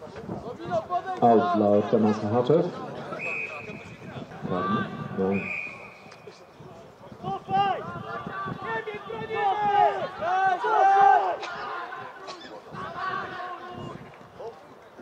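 Men shout across an open field.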